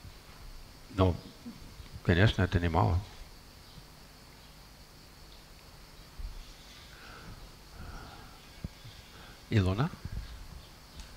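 An elderly man speaks calmly into a headset microphone, in short bursts with pauses.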